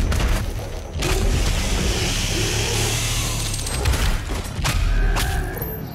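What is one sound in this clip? A monster growls and snarls.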